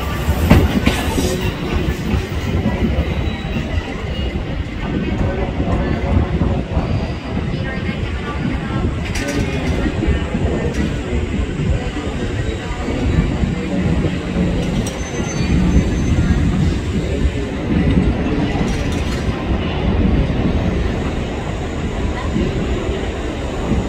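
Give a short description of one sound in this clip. A train rumbles and clatters over the rails as it pulls away.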